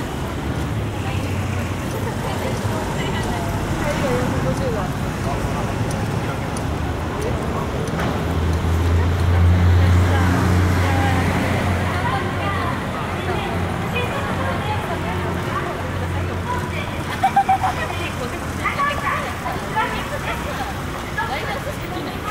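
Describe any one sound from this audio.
City traffic hums steadily along a busy street.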